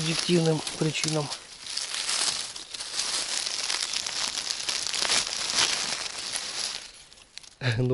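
Dry leaves rustle and crackle close by as a hand brushes through them.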